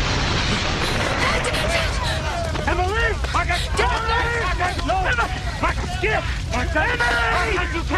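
Several men shout excitedly close by.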